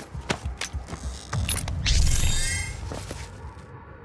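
Heavy blows crunch and thud into an armoured body.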